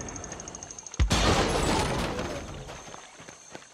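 An explosion bursts apart wooden crates with a loud bang.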